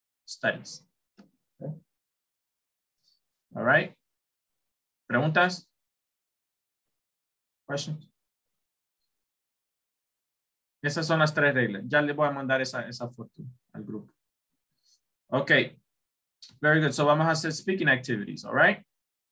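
A man speaks calmly over an online call, explaining in short bursts with pauses.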